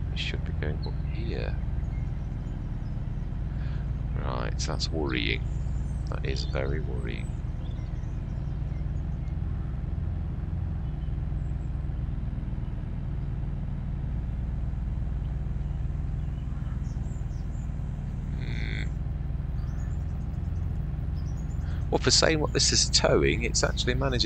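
A tractor engine hums steadily at a low pitch.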